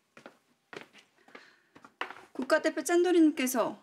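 Cups clunk onto a table.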